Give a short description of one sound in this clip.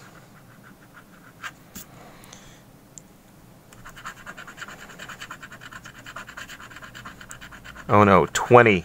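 A coin scratches rapidly across a card.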